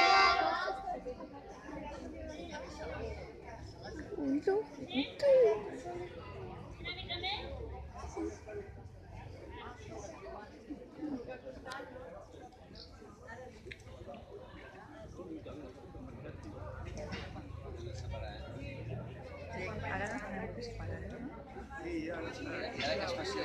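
A young man and others close by talk and call out excitedly.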